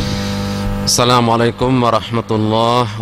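A man speaks through a microphone in a calm, chanting voice.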